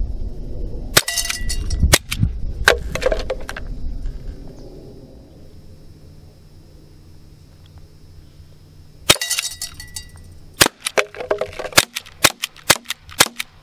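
A pistol fires sharp, loud shots one after another.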